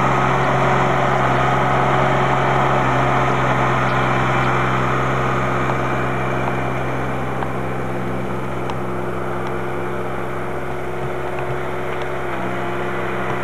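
A tractor engine chugs steadily close by and slowly grows quieter as it moves away.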